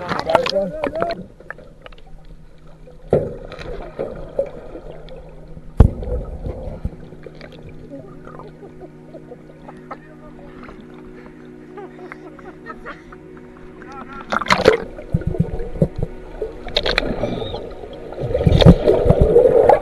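Bubbles gurgle underwater.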